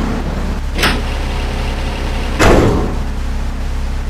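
A garage door rattles shut.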